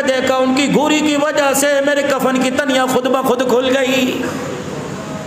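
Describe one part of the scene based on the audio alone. A man speaks with feeling into a microphone, in a chanting, sung tone.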